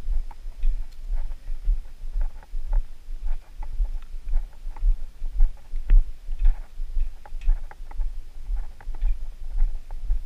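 Footsteps thud and crunch steadily along a path outdoors.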